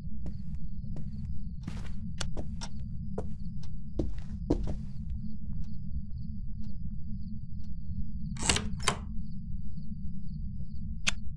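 A wooden door creaks as it swings open.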